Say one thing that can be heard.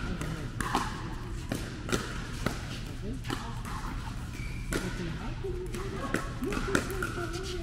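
Paddles strike a plastic ball with sharp pops in a large echoing hall.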